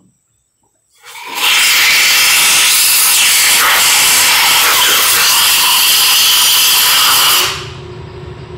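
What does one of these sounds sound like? Compressed air hisses loudly from an air hose, then cuts off.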